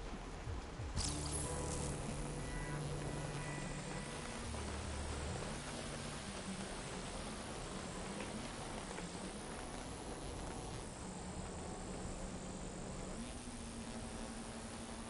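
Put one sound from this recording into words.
A burst of glowing energy roars and crackles steadily.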